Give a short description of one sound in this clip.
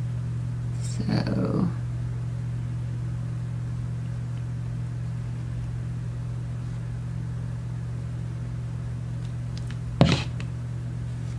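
Stiff paper rustles and taps as hands handle it.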